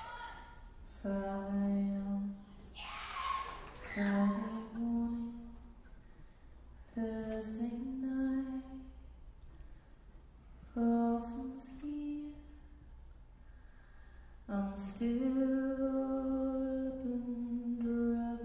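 A young woman sings slowly into a microphone, heard through loudspeakers.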